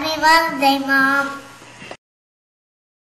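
A young girl speaks brightly and close by.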